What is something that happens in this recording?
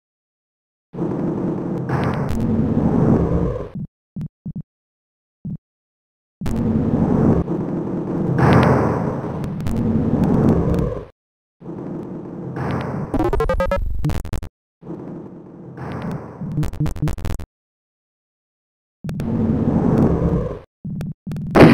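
Heavy metal doors slide open with a low rumbling grind.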